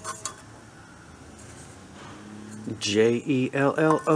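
A metal cake pan clinks softly as a hand handles it.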